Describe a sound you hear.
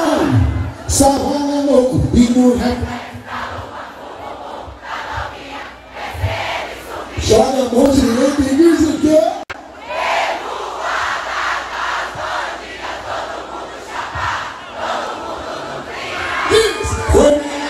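A huge crowd sings and cheers loudly outdoors.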